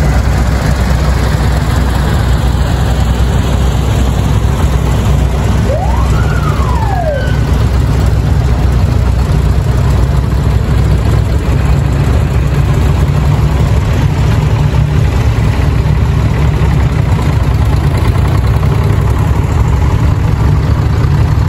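Old tractor engines chug and rumble steadily close by.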